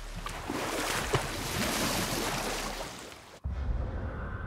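Water splashes against a rowing boat.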